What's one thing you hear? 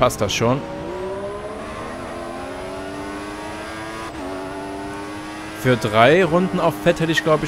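A racing car engine whines loudly and climbs in pitch as it accelerates.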